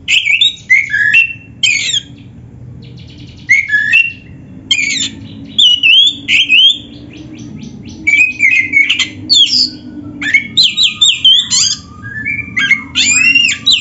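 A songbird sings loud, varied whistling phrases close by, in short bursts with brief pauses.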